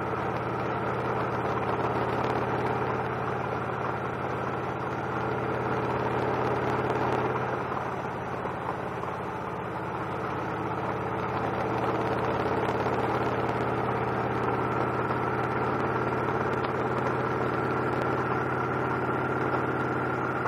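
Wind rushes past the windshield of a moving motorcycle.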